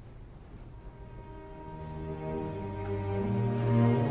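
A woman sings in a rising operatic voice in a large hall.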